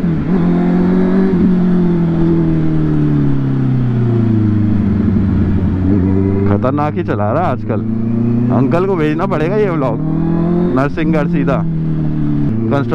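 A motorcycle engine hums steadily, its pitch rising and falling with the throttle.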